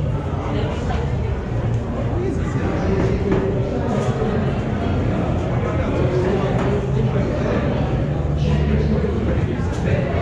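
A crowd chatters and murmurs in a large echoing concourse.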